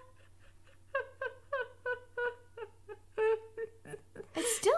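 A young woman giggles in short bursts.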